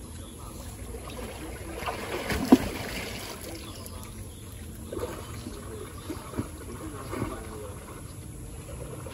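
Water ripples and laps gently in a pool.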